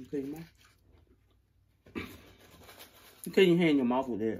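Paper crinkles as it is handled.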